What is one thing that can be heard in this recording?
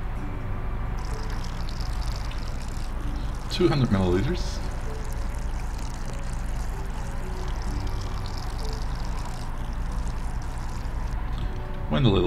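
Water pours steadily into a metal bowl.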